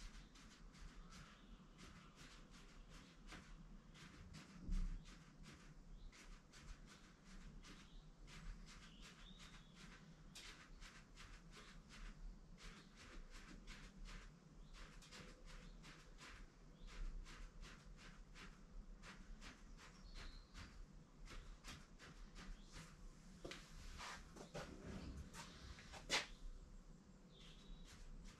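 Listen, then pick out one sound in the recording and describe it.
A pen taps and scratches on paper in quick, short strokes.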